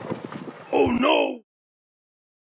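A young man cries out in pain.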